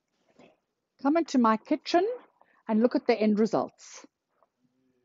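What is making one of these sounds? A middle-aged woman speaks warmly close to the microphone.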